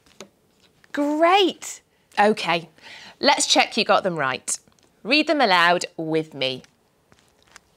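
A young woman speaks brightly and clearly into a clip-on microphone.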